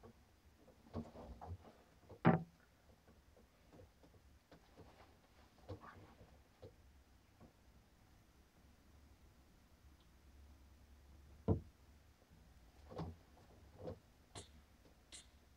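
An unplugged electric guitar is plucked softly, with sparse, quiet notes.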